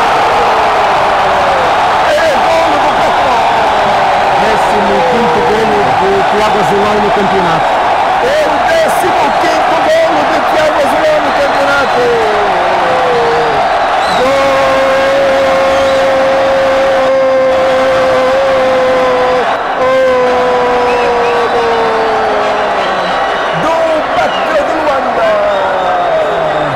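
A crowd sings and chants in long held notes.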